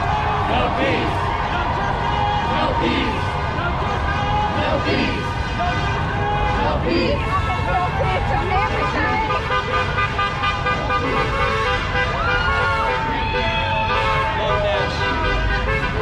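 Footsteps of many people shuffle along pavement.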